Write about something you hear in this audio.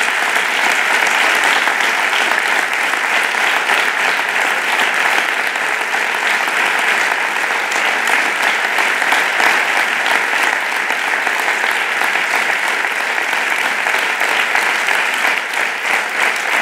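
A crowd applauds and cheers steadily.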